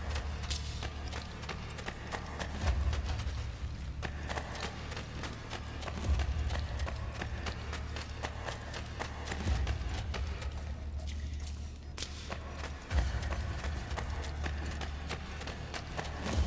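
Quick footsteps run on stone steps and paving.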